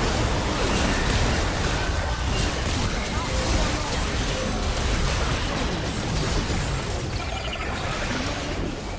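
Spell effects crackle and burst in a fast fight.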